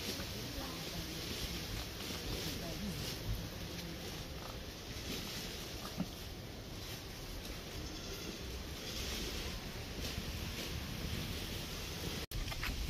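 A woman scrubs and washes something in a basin of water.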